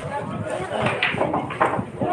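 A cue stick strikes a billiard ball with a sharp click.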